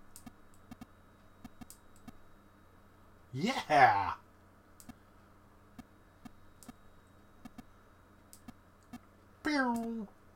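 Short electronic beeps sound as a ball bounces in a video game.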